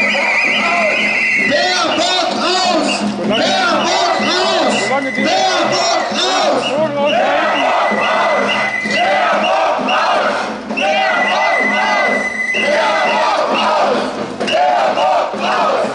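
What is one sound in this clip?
A crowd of men and women chants and shouts loudly outdoors.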